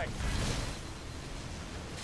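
An explosion bursts.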